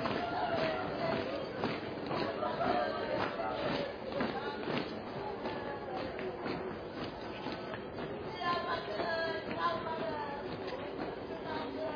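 Boots march in step on pavement.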